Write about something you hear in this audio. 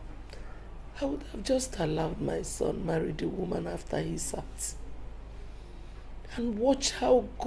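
A middle-aged woman speaks tearfully.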